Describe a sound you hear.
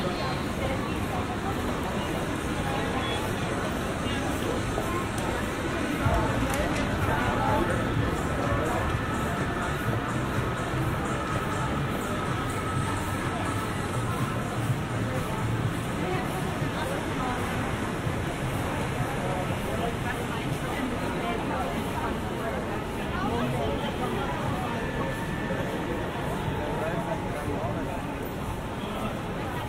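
Footsteps shuffle on paving stones.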